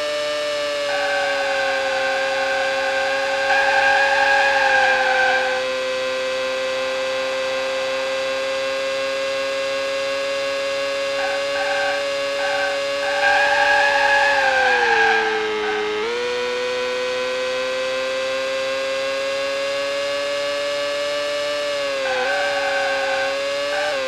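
A racing car engine whines at high pitch, dipping as the car slows for a corner and rising again.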